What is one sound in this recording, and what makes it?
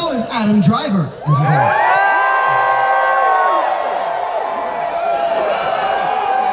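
A large crowd cheers and screams close by.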